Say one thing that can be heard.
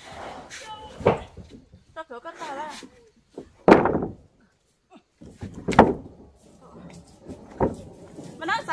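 Wooden planks knock and clatter against each other as they are shifted.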